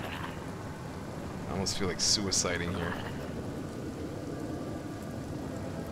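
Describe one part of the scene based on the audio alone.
A spell crackles and bursts with an icy shimmer.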